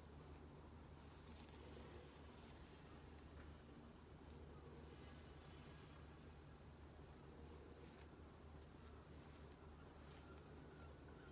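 Gloved hands rub softly over skin.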